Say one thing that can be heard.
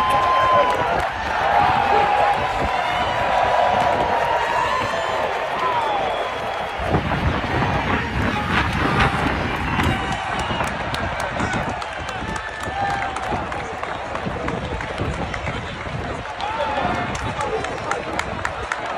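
A large crowd cheers and whistles in a big outdoor stadium.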